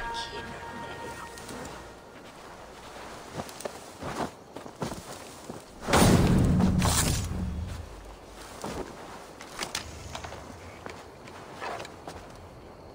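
Footsteps crunch softly on the ground.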